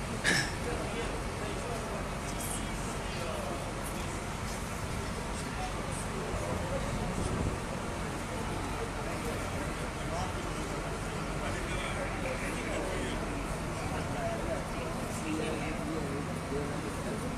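Fire engines idle with a steady low rumble.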